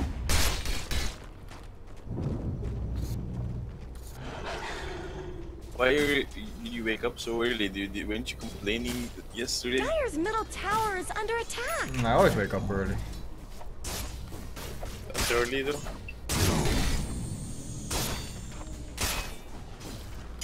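Magic blasts and weapon strikes clash in a game battle.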